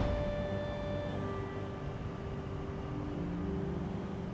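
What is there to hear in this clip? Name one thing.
Jet boots blast with a steady rushing roar.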